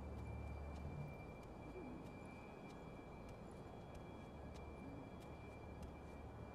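Footsteps crunch over broken roof tiles.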